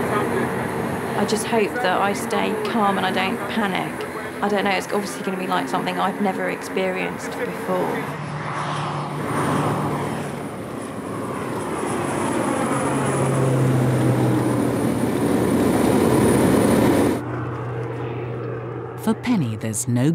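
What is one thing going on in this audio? A small aircraft engine drones steadily.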